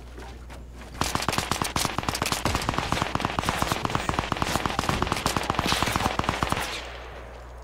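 A pickaxe strikes wood in rapid, repeated blows.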